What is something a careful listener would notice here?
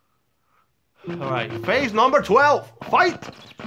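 A short game jingle plays at the start of a new round.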